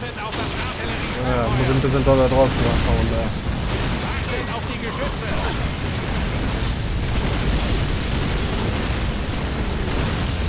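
Shells explode nearby with deep booms.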